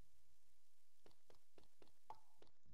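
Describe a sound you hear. Short electronic game sounds blip in a quick, even series.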